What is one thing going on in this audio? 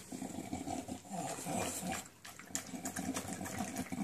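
A dog laps and chews food noisily from a metal bowl.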